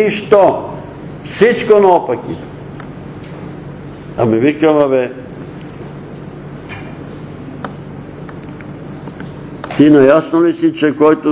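An elderly man speaks slowly, with long pauses, in a room with a slight echo.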